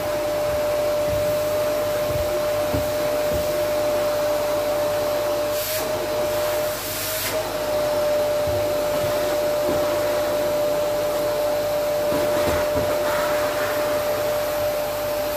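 A vacuum cleaner whines steadily with a high hum.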